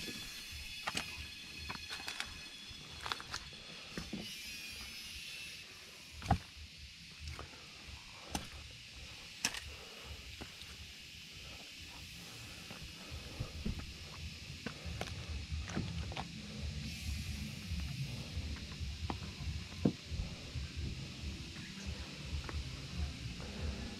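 Footsteps crunch on dry leaves and rock.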